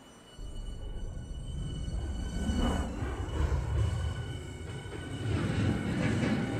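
A train's motor whines with a steady high hum.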